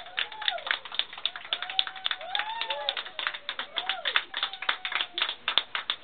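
Several people clap their hands rapidly and loudly.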